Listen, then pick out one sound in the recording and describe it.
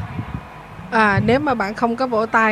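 A man sings through loudspeakers.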